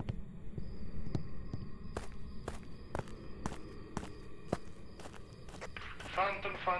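Footsteps tap steadily on a stone path.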